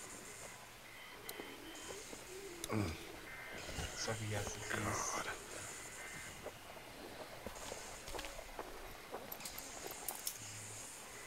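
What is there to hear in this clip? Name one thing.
A young man speaks quietly close to a microphone.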